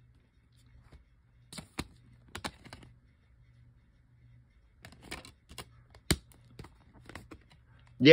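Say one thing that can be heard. A plastic disc case clicks and rattles as it is handled.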